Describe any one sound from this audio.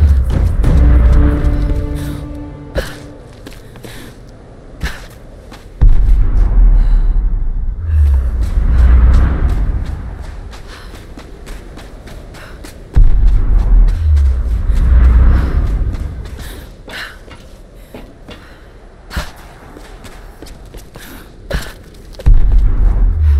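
Footsteps crunch quickly over sand and gravel.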